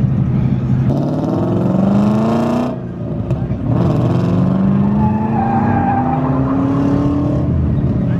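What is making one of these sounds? A car engine revs up and rises in pitch as the car accelerates away.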